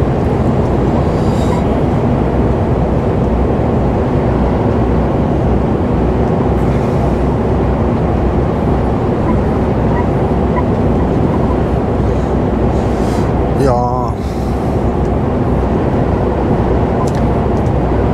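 Tyres roar on a wet road.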